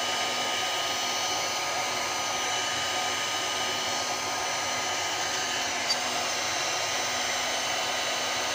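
A heat gun blows with a steady whoosh.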